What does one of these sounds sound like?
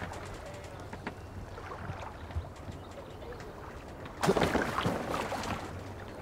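Oars dip and splash in the water.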